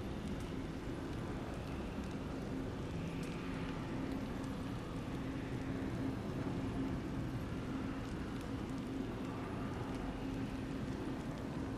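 A large glowing orb hums with a low, steady droning rumble.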